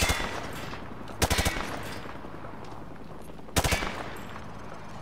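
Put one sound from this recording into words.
Rifle shots ring out in short bursts with a loud echo.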